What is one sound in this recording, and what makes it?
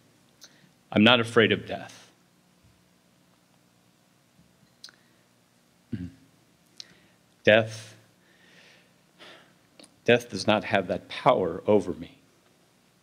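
A man speaks calmly into a microphone, heard through a loudspeaker in a large room, with pauses.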